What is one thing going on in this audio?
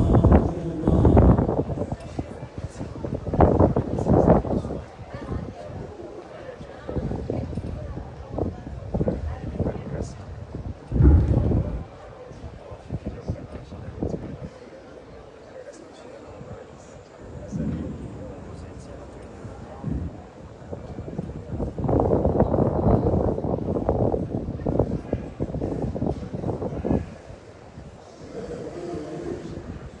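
A crowd murmurs far off across a large open stadium.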